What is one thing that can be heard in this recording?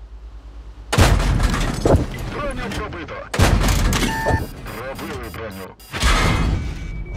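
A tank cannon fires with loud booming blasts.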